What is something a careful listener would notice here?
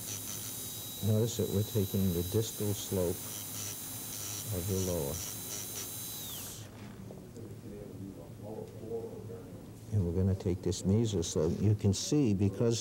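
An elderly man speaks calmly close by.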